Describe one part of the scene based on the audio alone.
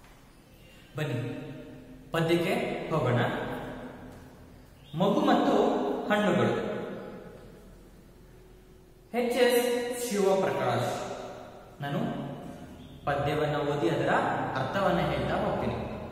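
A young man speaks clearly and with animation, close by, in a slightly echoing room.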